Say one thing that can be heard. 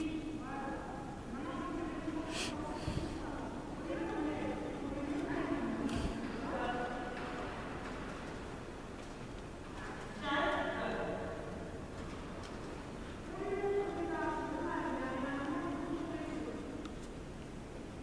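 A young woman talks to a dog with animation, close by, in a large echoing hall.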